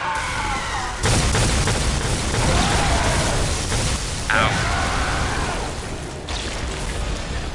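Magical energy bursts crackle and roar during a fight.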